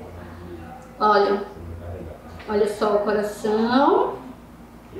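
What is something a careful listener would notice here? A woman speaks clearly and expressively, close by.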